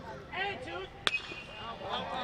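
A metal bat cracks sharply against a baseball.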